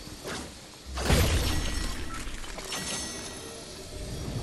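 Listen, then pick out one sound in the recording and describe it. A bright magical chime bursts out and rings away.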